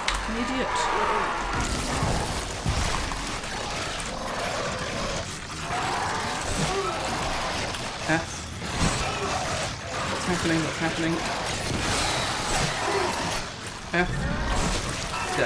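Creatures shriek and snarl.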